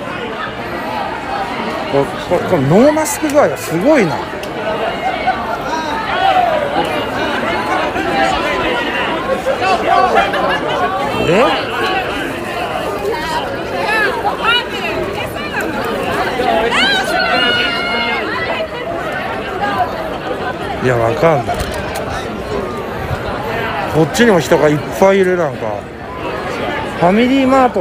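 A crowd of young men and women chatters and calls out all around outdoors.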